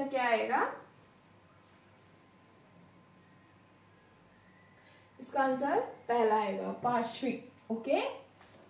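A woman speaks clearly and with animation, close by.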